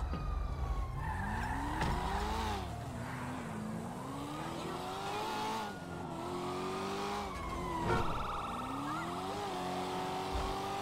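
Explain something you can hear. A sports car engine revs as the car accelerates through the gears.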